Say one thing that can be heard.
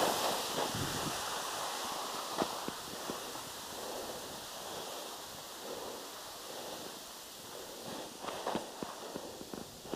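Skis scrape and hiss over crusty snow.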